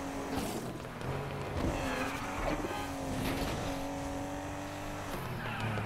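Tyres screech as a car skids around a corner.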